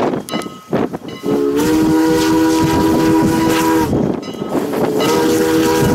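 A steam locomotive chuffs as it approaches.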